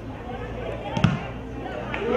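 A football is kicked with a dull thump.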